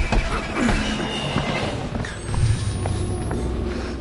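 Footsteps thud on creaking wooden floorboards.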